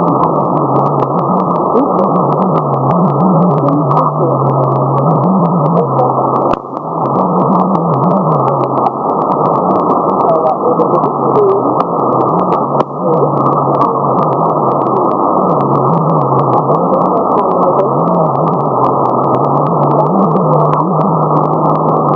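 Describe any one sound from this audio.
A low warbling tone drones through the radio static.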